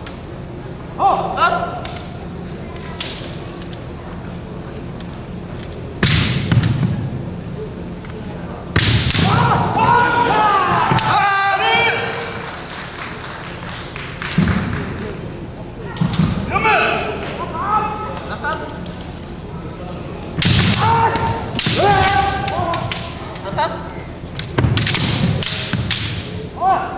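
Young men shout loud, drawn-out battle cries in a large echoing hall.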